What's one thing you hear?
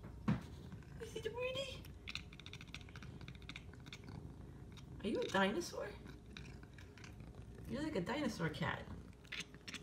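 A cat chirps and chatters close by.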